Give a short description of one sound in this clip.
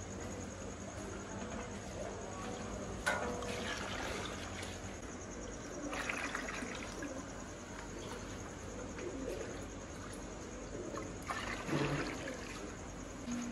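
Liquid splashes as it is poured from a metal mug into a large pot.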